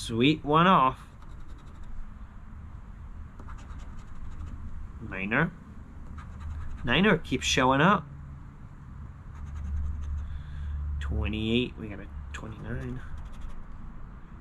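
A coin scratches across a lottery ticket.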